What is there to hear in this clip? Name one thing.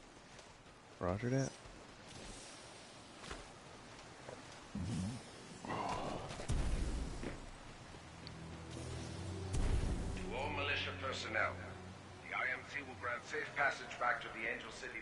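A man talks with animation into a microphone, close up.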